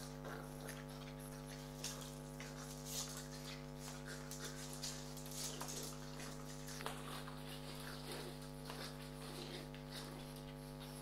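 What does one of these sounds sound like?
A rubber toy squeaks as dogs tug at it.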